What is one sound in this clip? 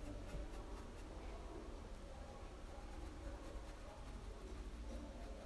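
A paintbrush softly brushes across cloth.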